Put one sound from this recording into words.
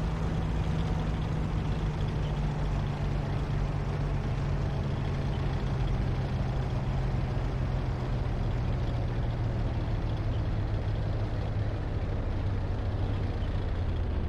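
A tank engine rumbles steadily and deeply.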